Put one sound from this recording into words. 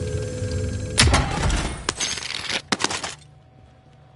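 A metal supply box creaks open with clattering loot.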